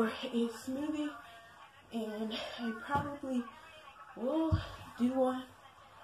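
A cushion thumps onto a wooden floor.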